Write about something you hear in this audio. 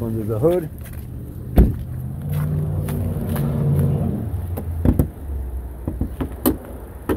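Footsteps crunch on icy slush.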